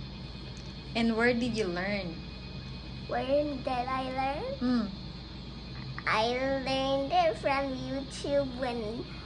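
A young girl speaks close by in a high, lively voice.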